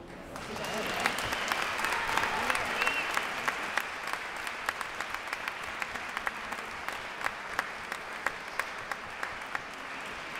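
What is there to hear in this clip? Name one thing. A band plays with saxophones and keyboard in a large echoing hall.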